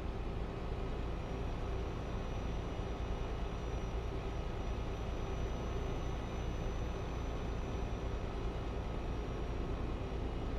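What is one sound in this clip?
A truck engine drones steadily at highway speed.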